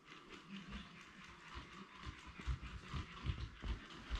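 A push toy clicks and rattles as it rolls along.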